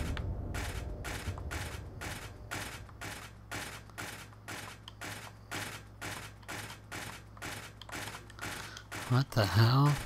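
Footsteps walk at a steady pace on a hard floor.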